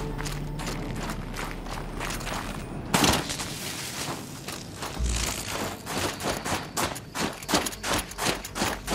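Wind blows through a snowstorm.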